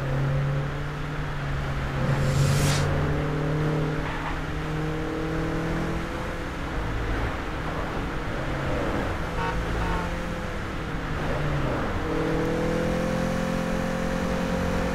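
A car engine revs as the car drives at speed.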